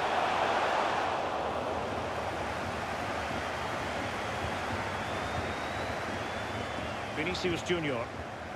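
A stadium crowd roars steadily, louder at first and then easing.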